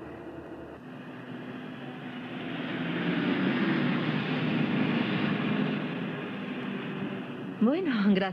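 A small van drives past on the road.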